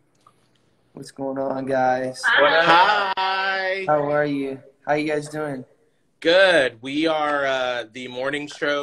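A man talks excitedly over an online call.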